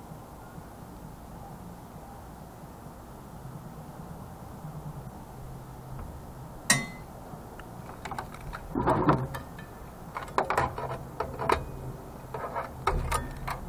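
Loose parts and wires clatter and knock on a hard surface.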